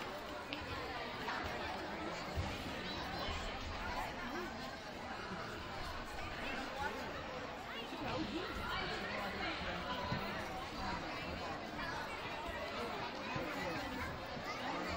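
A crowd of children and adults chatters and calls out in a large echoing gym.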